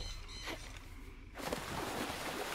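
A swimmer dives into water with a splash.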